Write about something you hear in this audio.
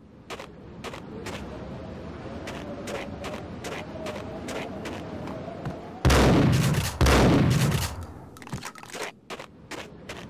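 Footsteps tap steadily.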